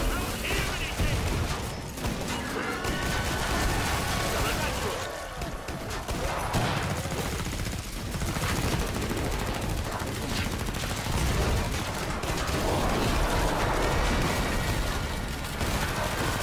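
A shotgun fires loud, booming blasts again and again.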